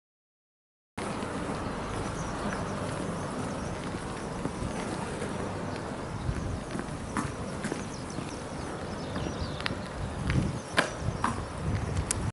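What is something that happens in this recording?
Wind blows and rumbles steadily outdoors.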